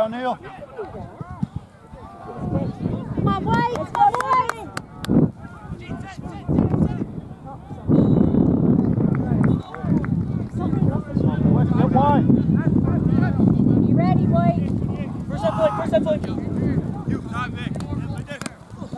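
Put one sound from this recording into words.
Young men and spectators shout across an open field outdoors.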